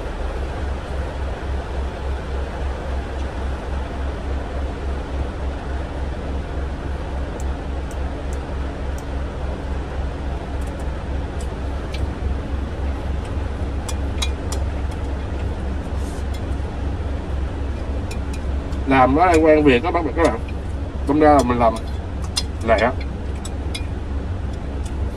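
A truck engine idles with a low, steady throb.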